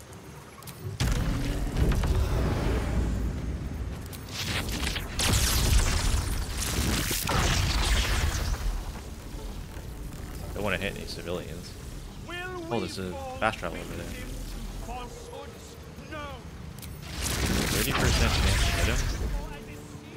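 Crackling magic blasts and clashing fight sounds burst out in loud waves.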